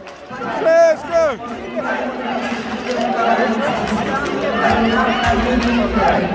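Fans clap their hands in rhythm.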